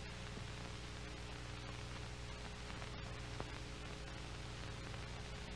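An aircraft engine drones steadily.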